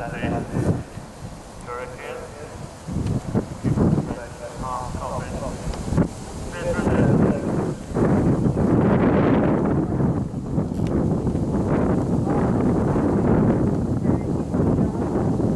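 A horse gallops over grass with thudding hoofbeats.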